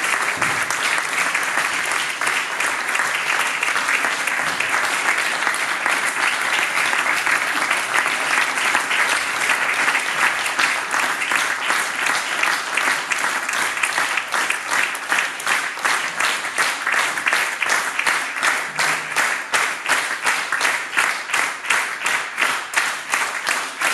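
An audience applauds loudly in a large hall.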